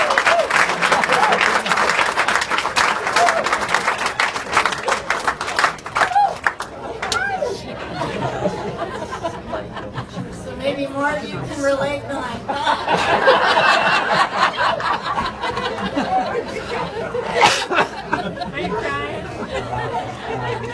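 A band plays live music on a stage.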